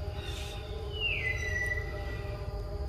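A baby monkey gives a short high squeak.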